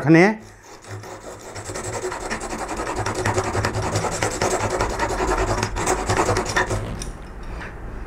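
A steel blade scrapes back and forth on a sharpening stone.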